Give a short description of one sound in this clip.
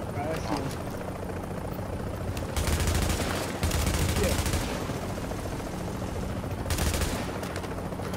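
Rifle shots crack in short bursts.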